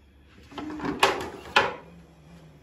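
A plastic plate clatters against the counter.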